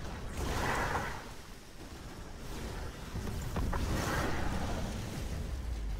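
Magic blasts whoosh and crackle in a game battle.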